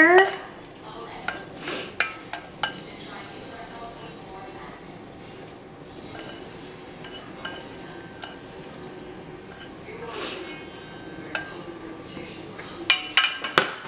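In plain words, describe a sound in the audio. Metal tongs scrape and clink against a metal pan.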